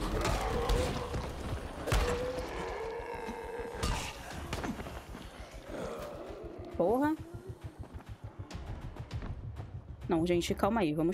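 Zombies groan and blows land in a game's combat.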